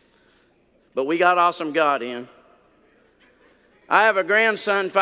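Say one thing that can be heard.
An older man speaks with expression through a microphone in a large room.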